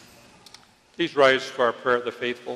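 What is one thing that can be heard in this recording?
A man speaks clearly through a microphone in a large echoing hall.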